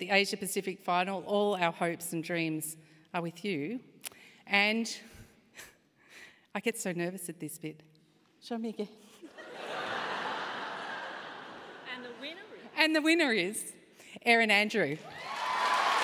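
A woman speaks through a microphone in a large echoing hall, calmly announcing.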